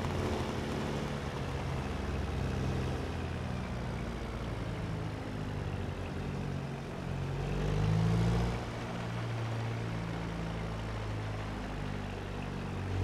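A sports car engine hums at low speed, rising and falling as the car drives along.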